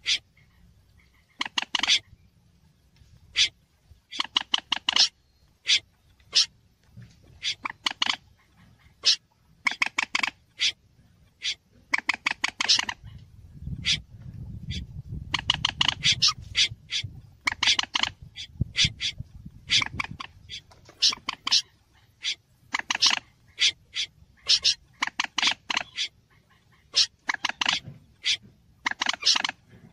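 A bird gives bursts of rapid, sharp, repeated calls.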